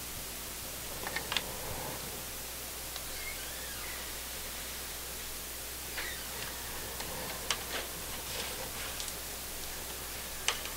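A man talks calmly close to a microphone, now and then.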